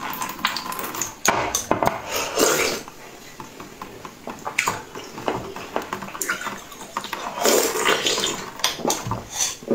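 A young woman crunches ice while chewing close up.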